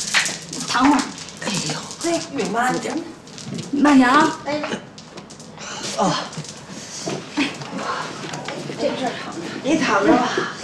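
A young woman speaks gently and with concern, close by.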